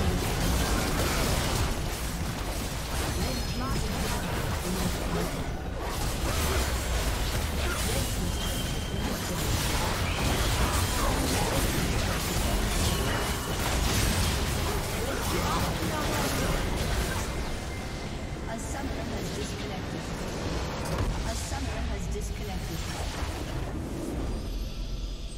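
Game spell effects crackle and explode in a busy battle.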